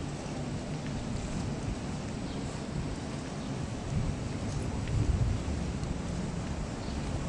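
Water laps and splashes with a hollow echo.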